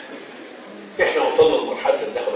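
A middle-aged man speaks loudly through a microphone in an echoing hall.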